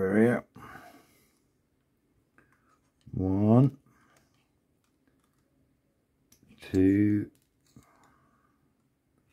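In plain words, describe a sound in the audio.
A blade snips small plastic parts from a frame with faint clicks.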